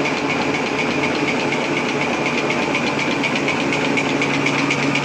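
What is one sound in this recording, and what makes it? A machine whirs steadily with a fast, even clatter.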